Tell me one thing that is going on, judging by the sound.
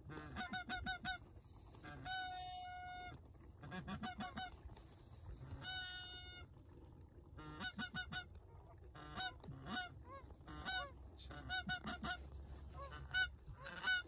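Geese honk repeatedly in short, rising calls.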